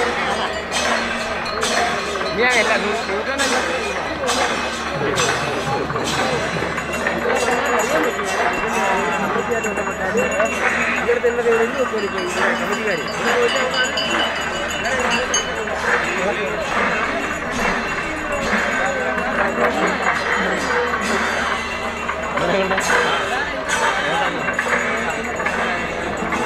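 A crowd of people chatters loudly outdoors.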